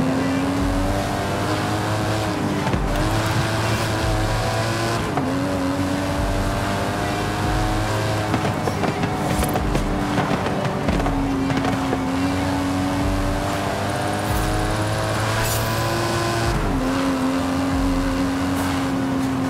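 A sports car engine roars steadily, its pitch dropping briefly with each gear change.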